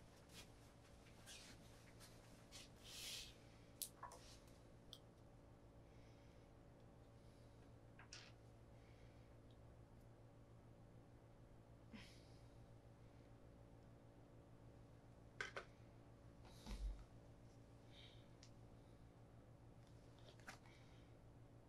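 Small objects click and tap on a wooden table.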